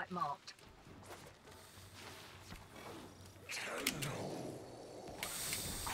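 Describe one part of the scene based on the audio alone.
Blades swing and whoosh in a fast video game fight.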